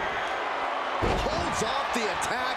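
A body slams heavily onto a wrestling mat with a thud.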